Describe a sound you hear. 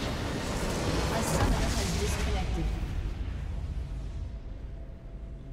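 A loud magical blast roars and rumbles, then fades away.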